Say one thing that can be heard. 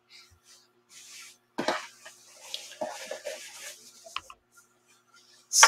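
Fabric rustles softly as it is smoothed and folded.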